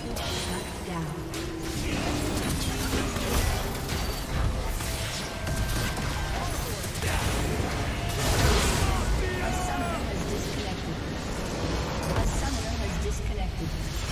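Game spell effects and attacks crackle and clash in a fight.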